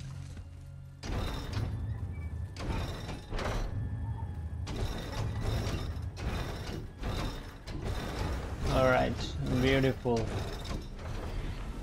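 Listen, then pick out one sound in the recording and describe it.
A heavy wheel clanks and rattles as it is cranked round.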